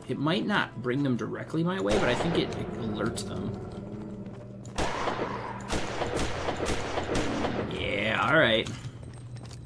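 A revolver fires several loud shots.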